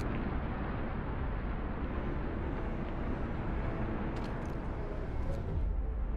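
Wind blows steadily over snow.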